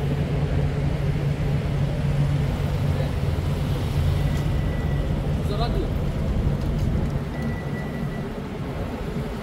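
A minibus engine hums low and steady nearby.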